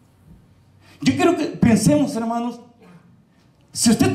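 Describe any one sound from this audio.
A man speaks with animation into a microphone through loudspeakers.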